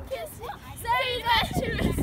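A young girl laughs and squeals close by.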